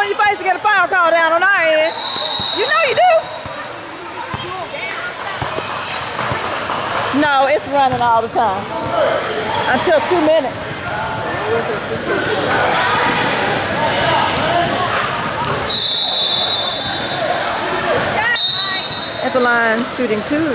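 Spectators and players shout in a large echoing gym.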